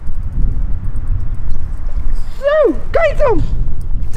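Something splashes in the water close by.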